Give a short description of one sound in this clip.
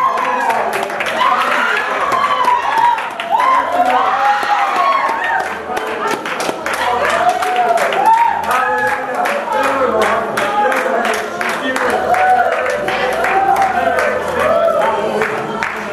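A group of men and women sing together nearby.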